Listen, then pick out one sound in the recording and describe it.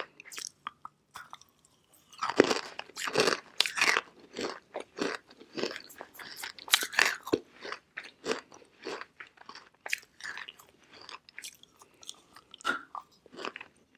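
A young woman bites into chalky rock with sharp crunches close to a microphone.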